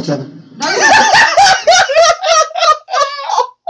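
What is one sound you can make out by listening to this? A young man bursts into high, wheezing laughter close by.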